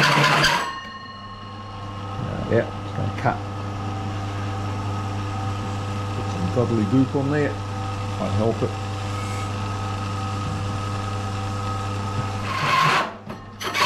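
A machine motor hums steadily.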